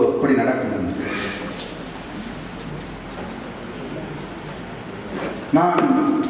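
A middle-aged man speaks firmly into a microphone over a loudspeaker, in an echoing hall.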